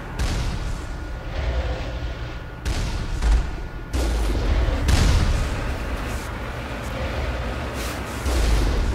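An armoured vehicle's engine rumbles as it drives.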